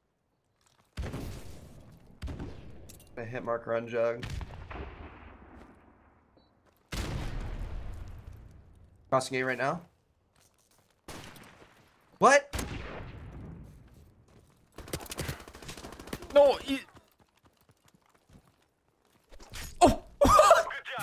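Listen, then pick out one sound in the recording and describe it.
Gunshots crack with echoing tails.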